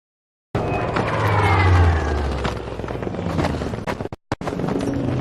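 An explosion booms close by with a deep rumble.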